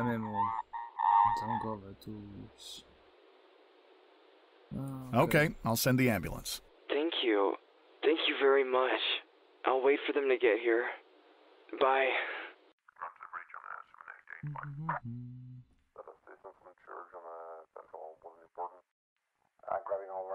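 A man speaks calmly close to a headset microphone.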